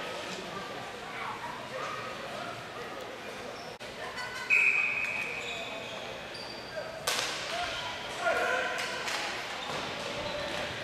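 A crowd of spectators chatters and shouts in a large echoing arena.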